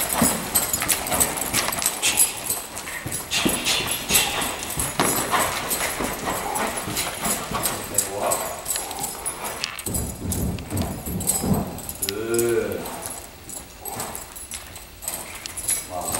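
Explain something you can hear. A horse trots with dull hoofbeats on soft ground.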